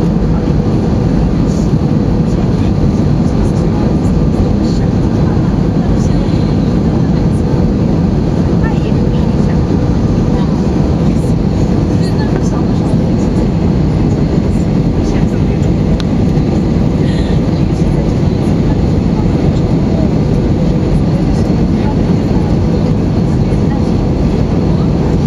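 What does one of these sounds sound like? Jet engines roar steadily with a deep rushing of air, heard from inside an aircraft cabin.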